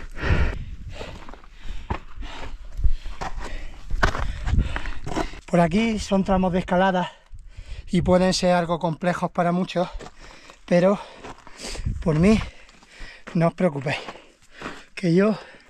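A man talks breathlessly close to the microphone.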